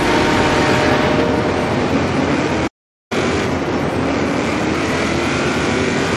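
A car engine roars loudly as it accelerates.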